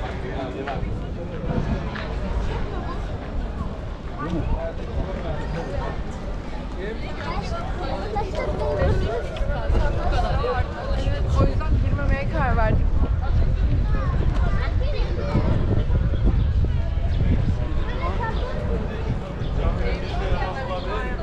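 Footsteps scuff on cobblestones.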